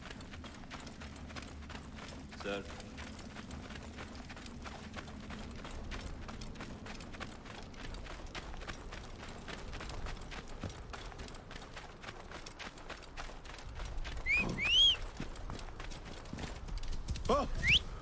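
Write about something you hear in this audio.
Footsteps run quickly over sand.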